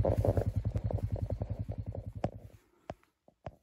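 An off-road vehicle's engine putters and dies away.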